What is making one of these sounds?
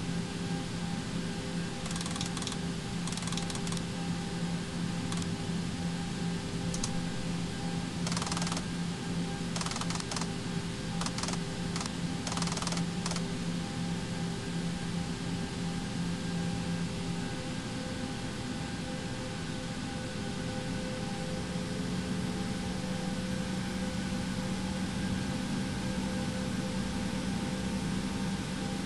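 A jet engine hums steadily from inside a cockpit.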